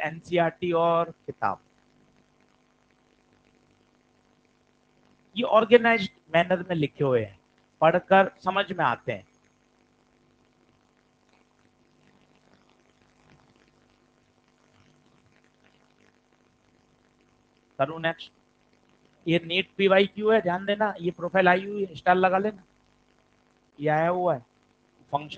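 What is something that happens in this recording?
A man explains calmly into a microphone, pausing between phrases.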